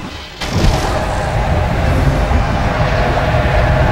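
A dragon beats its wings with a deep whooshing.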